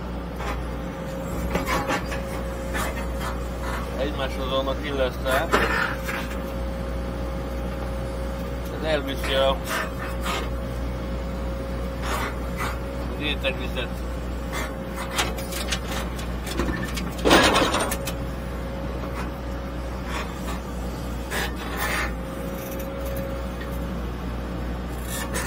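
Clods of earth knock and thud as an excavator bucket digs and dumps soil.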